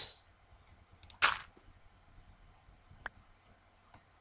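A soft crunch of dirt sounds as a block is placed in a game.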